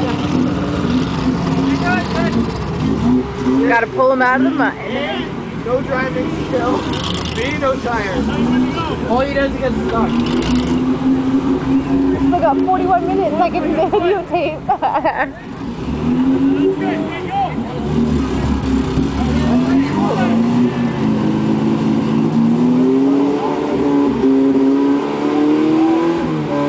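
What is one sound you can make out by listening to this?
A truck engine revs hard, rising and falling as it strains in deep mud.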